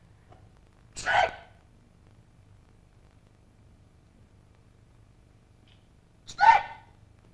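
A young woman cries out loudly.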